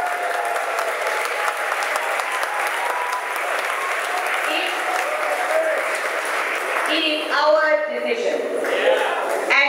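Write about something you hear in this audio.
A middle-aged woman speaks passionately into a microphone, heard through a loudspeaker in a large echoing hall.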